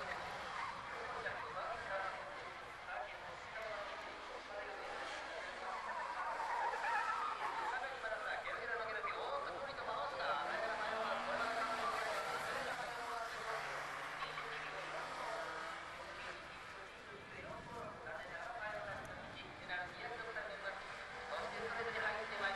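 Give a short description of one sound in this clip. Tyres squeal through tight corners.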